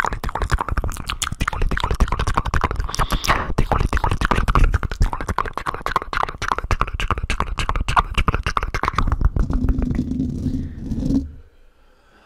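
Hands rub and tap rapidly on a microphone up close, with crisp crackling clicks.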